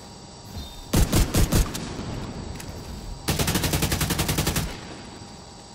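A rifle fires bursts of rapid, loud shots.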